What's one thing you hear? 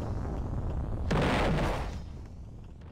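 A rocket blast explodes with a roar.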